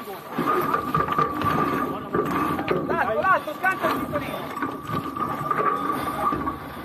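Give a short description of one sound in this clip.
A winch clicks and ratchets.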